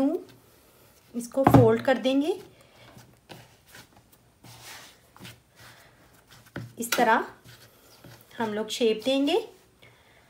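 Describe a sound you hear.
Hands press and pat soft dough with quiet, dull thumps.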